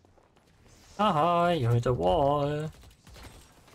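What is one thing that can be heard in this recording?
A young man talks into a microphone with animation.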